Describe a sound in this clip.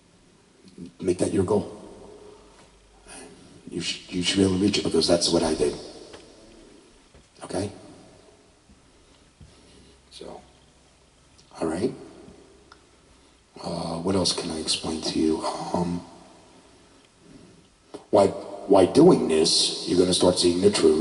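A man speaks with animation into a microphone, close and amplified.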